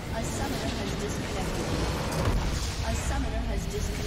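A large structure explodes with a deep boom.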